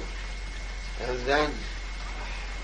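An elderly man speaks briefly in a low voice.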